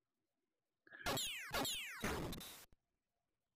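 Retro electronic game zaps burst out three times, each falling in pitch.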